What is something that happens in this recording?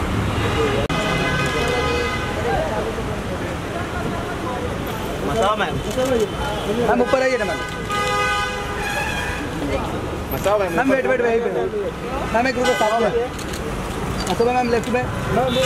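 Traffic hums steadily along a busy street.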